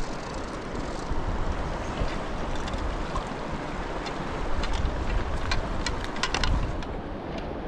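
A fishing reel clicks in quick bursts.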